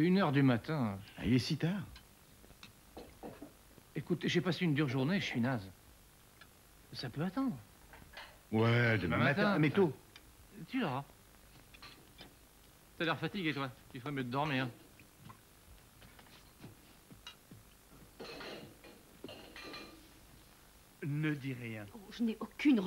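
A man speaks calmly and reflectively, close by.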